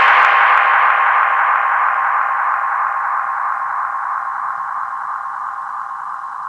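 Music plays loudly through speakers and slowly fades.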